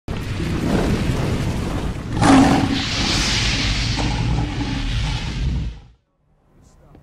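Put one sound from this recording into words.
Flames roar and whoosh loudly.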